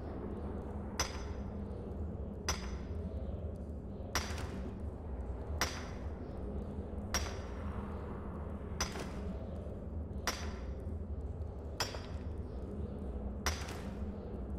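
A pickaxe strikes rock with sharp metallic clinks at a steady pace.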